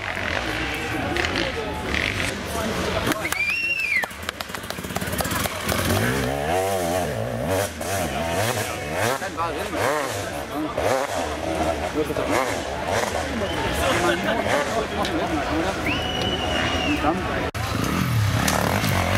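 A crowd of onlookers chatters outdoors.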